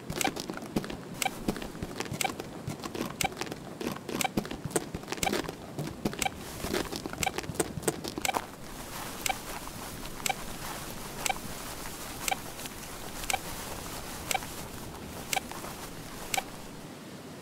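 Footsteps crunch steadily over grass and gravel.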